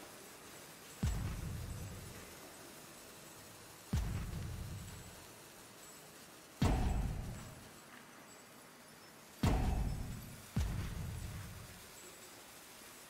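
Heavy booming impacts land every few seconds, each rumbling away slowly.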